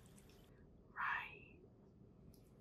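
A young woman makes a short vocal sound close to a microphone.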